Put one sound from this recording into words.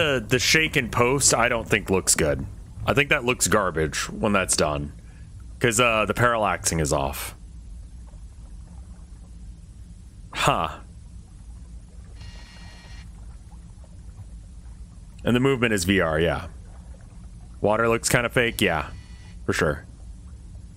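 A man talks calmly into a close microphone, in bursts with pauses.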